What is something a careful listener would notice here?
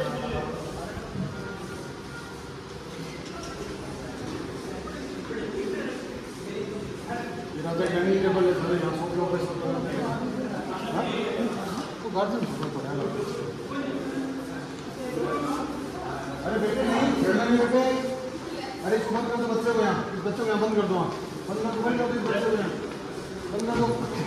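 Footsteps shuffle across a hard stone floor.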